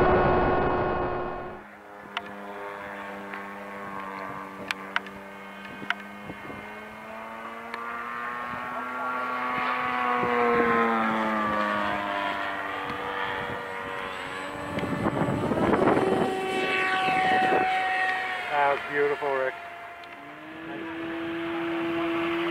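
A small model airplane engine buzzes with a high whine, rising and falling in pitch as the plane flies past.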